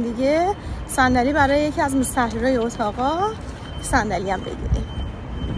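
A young woman speaks with animation close to the microphone.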